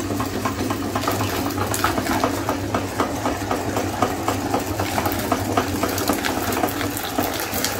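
An electric grinder crunches and squishes soft fruit.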